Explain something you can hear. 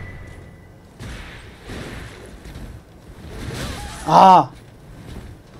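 A sword swings and slashes with a whoosh.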